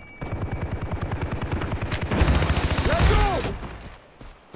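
An automatic rifle fires in rapid bursts, close by.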